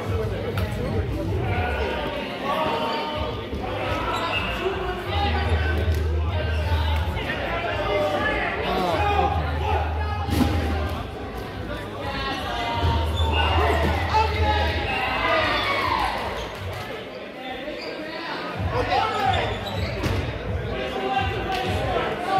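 A crowd of young people talk and call out across a large echoing hall.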